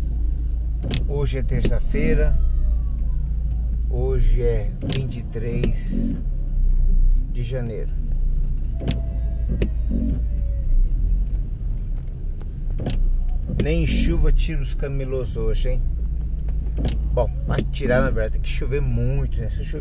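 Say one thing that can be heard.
A car engine idles close by.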